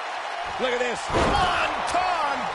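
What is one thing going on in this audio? A heavy body slams down onto a wrestling ring with a loud thud.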